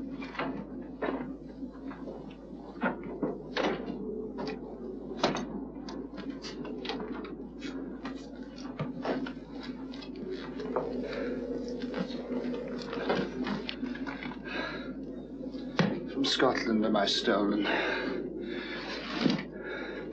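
Dry twigs snap and crackle as a person pushes through bare bushes.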